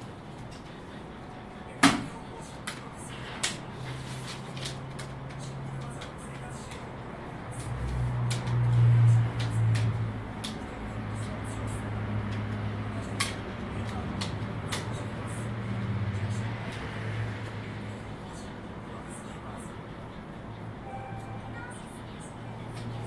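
Paper rustles and clicks under a man's hands.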